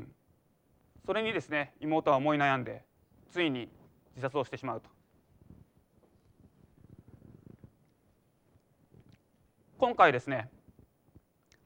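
A young man speaks calmly into a microphone, with pauses between phrases.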